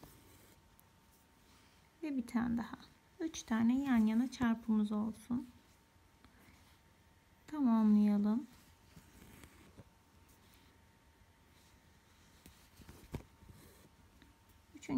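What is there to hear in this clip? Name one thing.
Thread rasps softly as it is pulled through coarse cloth.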